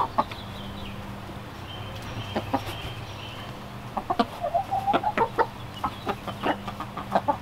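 Chickens peck at the ground with quick taps.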